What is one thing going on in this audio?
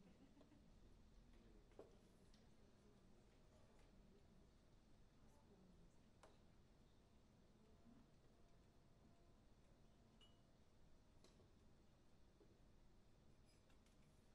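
A piano plays chords.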